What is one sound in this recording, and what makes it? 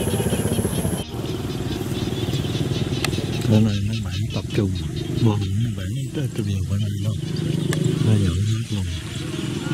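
Men and women talk calmly at a distance, outdoors.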